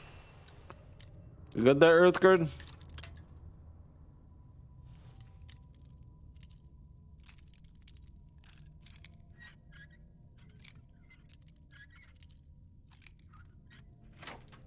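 A metal lockpick scrapes and clicks faintly inside a lock.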